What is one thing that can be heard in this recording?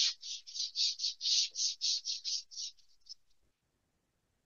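A duster rubs briskly across a board in quick, repeated strokes.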